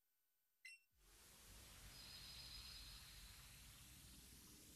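A swirling whoosh rises and lingers.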